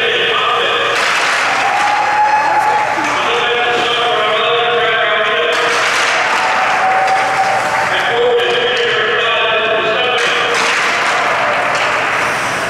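A crowd cheers and claps in bursts in a large echoing hall.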